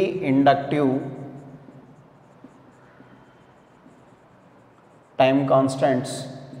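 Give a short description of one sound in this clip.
A young man speaks aloud, lecturing.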